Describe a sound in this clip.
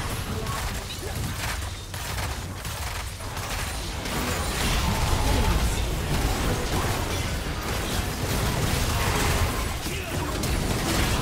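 Game spell effects crackle and burst during a busy fight.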